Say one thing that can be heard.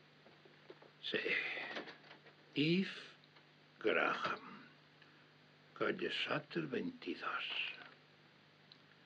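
An elderly man speaks slowly and gravely in short phrases, close by.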